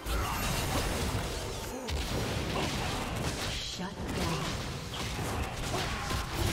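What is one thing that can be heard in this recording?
Game battle effects crash and whoosh as fighters clash.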